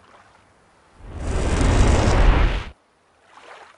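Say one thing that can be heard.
A magic spell whooshes loudly with a deep rumble and then cuts off.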